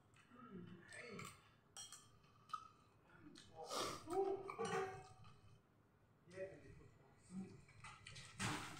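A man eats close by, chewing and slurping.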